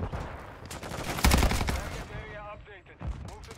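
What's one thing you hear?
Bullets smack into metal walls.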